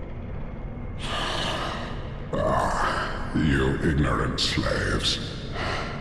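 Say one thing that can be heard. A giant creature strikes with heavy crashing blows.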